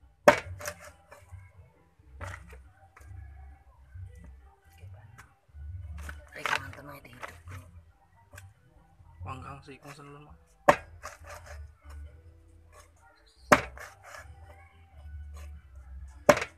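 A knife scrapes scales off fish.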